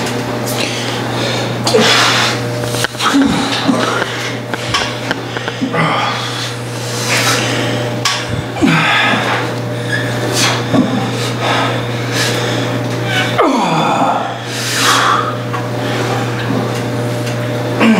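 A man breathes out hard and forcefully with each push.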